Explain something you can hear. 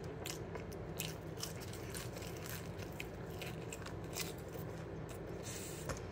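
A teenage boy chews food close by.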